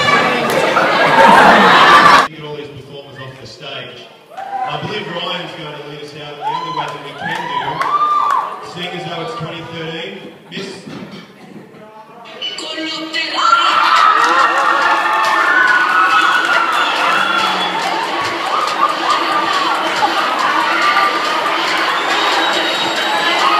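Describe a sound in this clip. A group of young people sing together in a large echoing hall.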